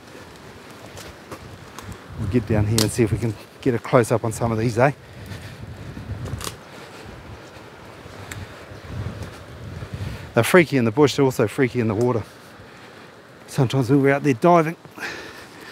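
Footsteps crunch through dry leaves and twigs on a path.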